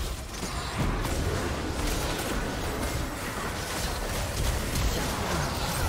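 Magic spells burst and crackle in a fast fight.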